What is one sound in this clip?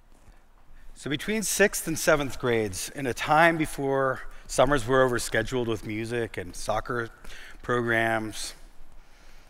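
A middle-aged man speaks calmly through a microphone.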